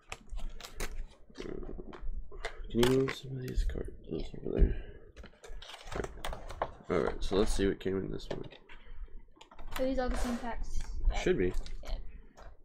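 Plastic card wrappers crinkle and rustle.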